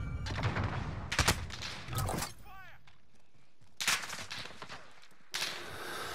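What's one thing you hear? Single pistol shots crack.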